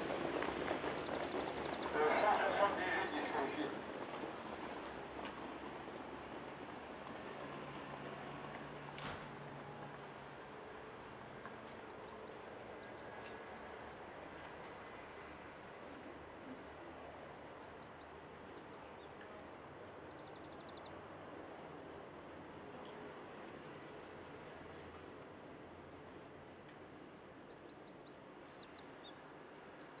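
Trotting horses' hooves drum on a dirt track.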